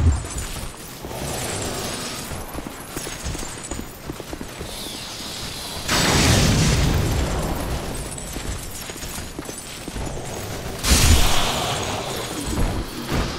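Footsteps clatter on stone.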